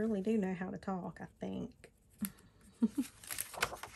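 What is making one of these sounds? A pencil scratches on paper.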